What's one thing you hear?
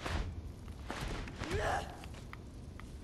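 A wooden door swings open with a creak.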